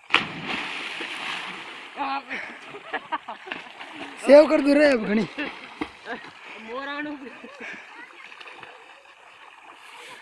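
Water splashes as a young man swims.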